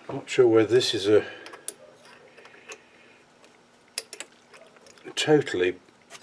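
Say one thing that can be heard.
Metal parts of a lathe chuck click and knock under a hand.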